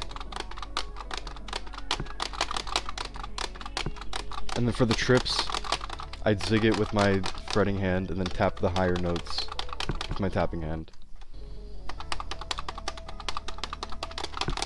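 Plastic guitar controller buttons click and clatter rapidly.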